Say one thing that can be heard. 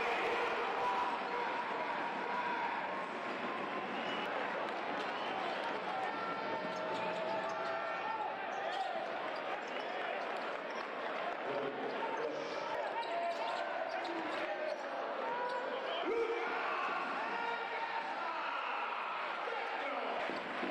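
A large crowd cheers and murmurs in a big echoing arena.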